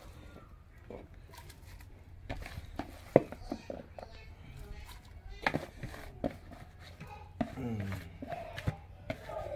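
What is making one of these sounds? A hand scrapes moist food from a plastic bowl with soft clicks and rustles.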